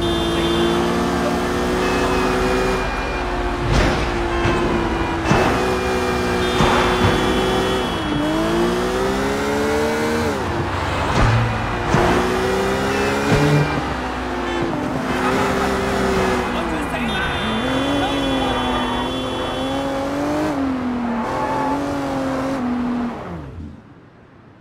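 A car engine revs, rising and falling in pitch as it speeds up and slows down.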